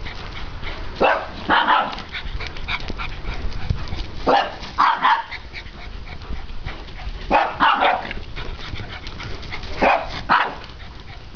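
Small dogs bark excitedly while playing.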